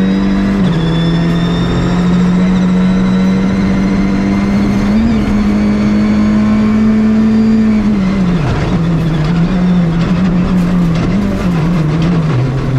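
Gravel crunches and rattles under the tyres.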